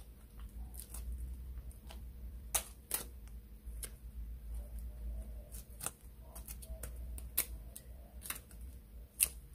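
Fingers tear dried fish into a metal bowl with soft crackles and rustles.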